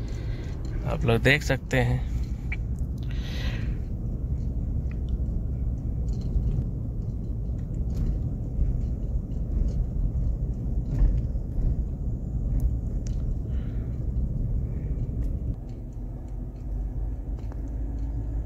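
A car engine hums and tyres rumble on the road from inside a moving car.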